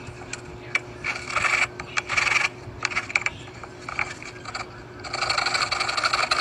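A hand saw rasps through soft wood in short strokes.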